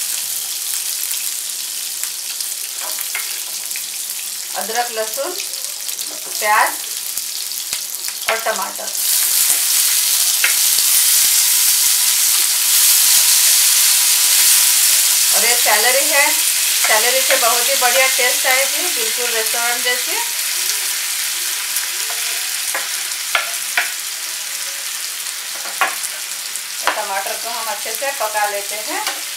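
Oil sizzles steadily in a hot frying pan, growing louder partway through.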